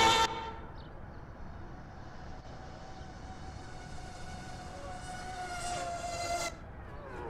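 A racing car engine whines and revs in the distance, then grows louder.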